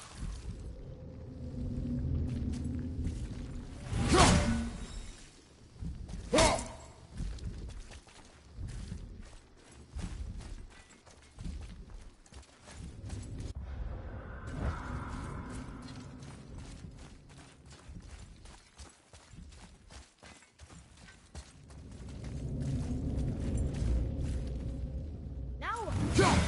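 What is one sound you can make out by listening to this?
Heavy footsteps crunch on rough ground.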